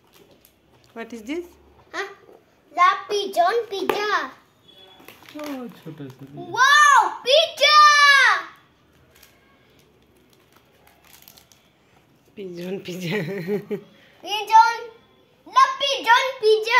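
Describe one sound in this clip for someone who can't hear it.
A young boy talks excitedly close by.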